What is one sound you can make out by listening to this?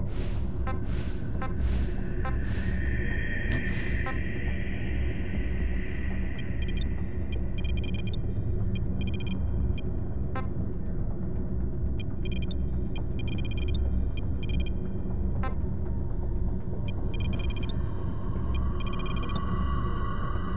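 Soft electronic menu blips tick as settings change.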